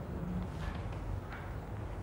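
A man rubs a whiteboard with a duster.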